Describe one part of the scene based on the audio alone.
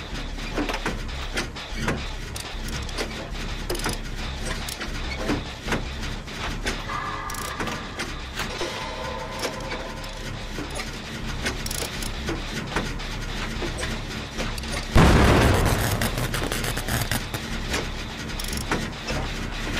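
Metal parts clatter and click as an engine is repaired by hand.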